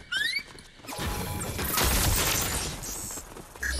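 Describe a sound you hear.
A pickaxe strikes a wall with sharp hits.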